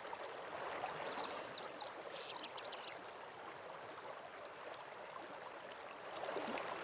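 A waterfall rushes steadily in the distance.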